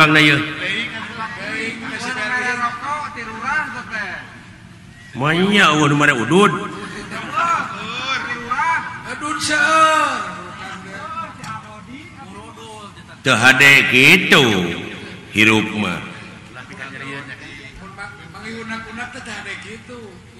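A man speaks with animation in a theatrical, changing voice over a loudspeaker.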